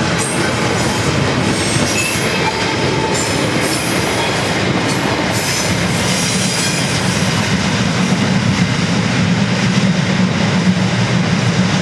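Freight wagons rumble and clatter along the rails.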